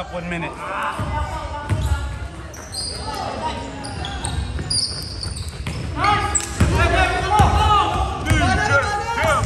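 A basketball bounces with dull thumps on a hard floor.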